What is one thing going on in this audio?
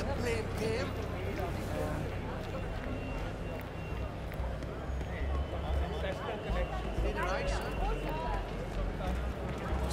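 A crowd of men and women chatter all around on a busy street.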